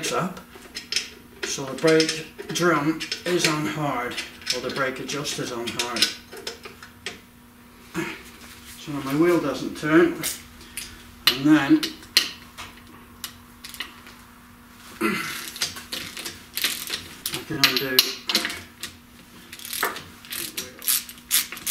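Metal parts clink and tap.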